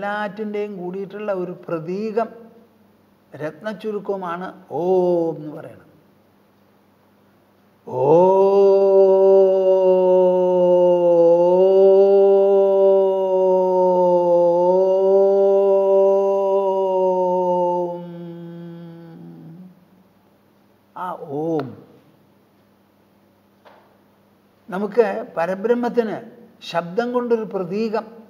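An elderly man speaks calmly and close to a microphone.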